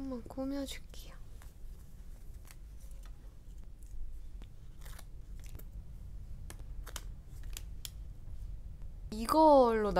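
Tweezers tap lightly on card.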